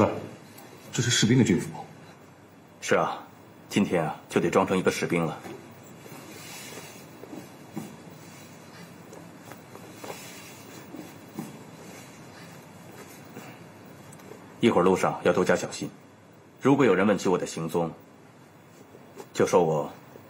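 A young man answers calmly, close by.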